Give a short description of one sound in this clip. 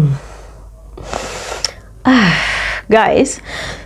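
A young woman sniffs deeply.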